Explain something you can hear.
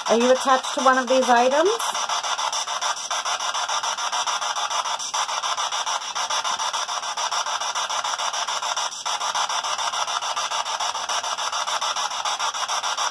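A small radio scanner hisses with choppy static that pulses rapidly and steadily.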